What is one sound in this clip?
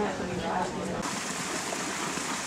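Water trickles over a small drop into a flooded paddy.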